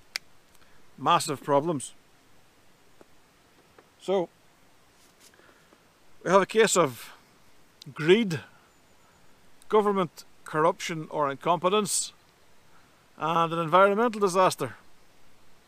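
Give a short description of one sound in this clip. A middle-aged man talks calmly and close by, with pauses.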